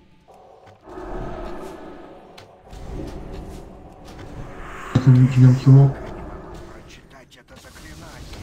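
Magic spells whoosh and crackle in a battle.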